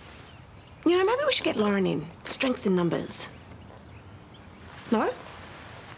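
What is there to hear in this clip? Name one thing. A woman speaks firmly and closely.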